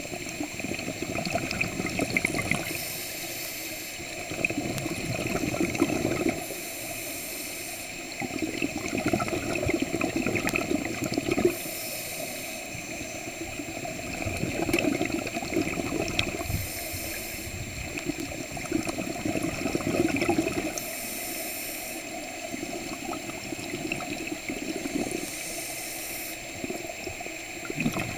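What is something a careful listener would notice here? A diver breathes out through a regulator, sending out bursts of bubbles in a slow rhythm.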